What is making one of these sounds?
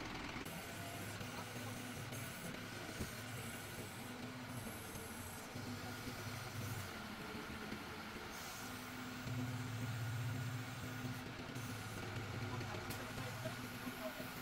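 A crane engine rumbles steadily nearby.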